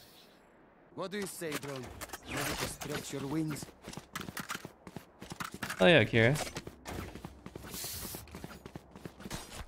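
A young man talks with animation into a close microphone.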